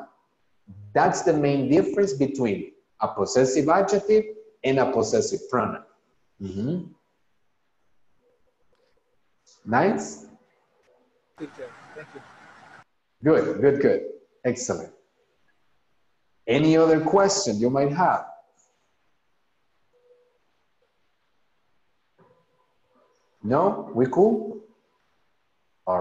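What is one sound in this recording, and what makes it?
A young man speaks calmly and clearly over an online call, pausing between phrases.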